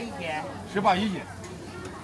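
People talk in a busy street market nearby.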